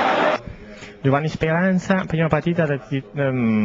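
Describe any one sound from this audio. A man speaks calmly into a microphone close by.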